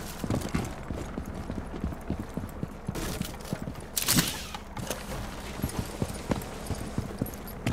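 A rope creaks and slides as a climber rappels.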